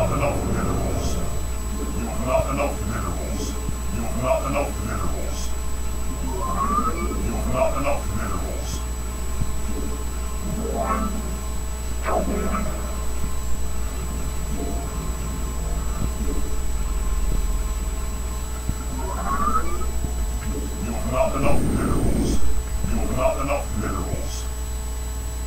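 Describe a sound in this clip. Short electronic game blips sound now and then.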